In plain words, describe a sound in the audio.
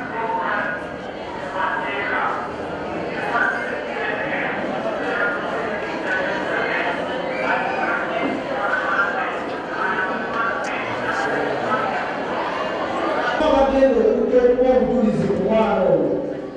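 A man talks with animation through a microphone and loudspeakers.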